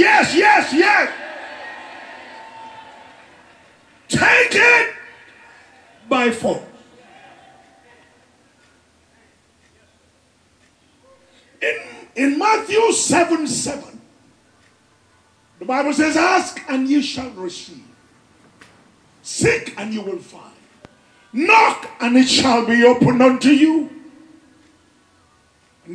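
A man preaches loudly with passion through a microphone, in short bursts with pauses.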